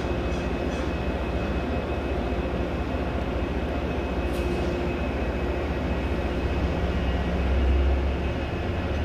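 A passenger train rumbles slowly past with a deep, steady engine drone.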